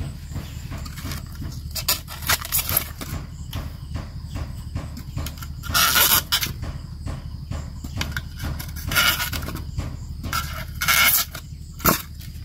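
Foam squeaks and rustles under handling.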